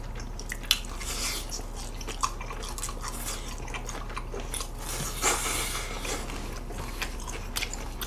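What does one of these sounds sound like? A young man chews and slurps food close to a microphone.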